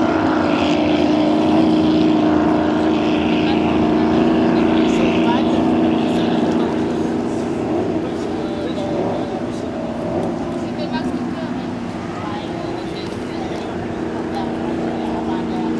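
A crowd murmurs far off across open water.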